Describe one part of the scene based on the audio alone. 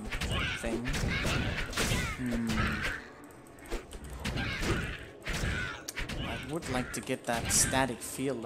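Game combat sounds of spells and blows crackle and thud.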